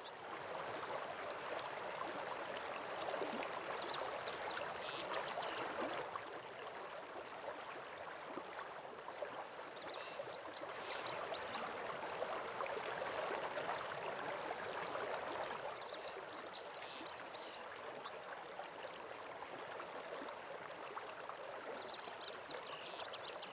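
A waterfall rushes steadily in the distance.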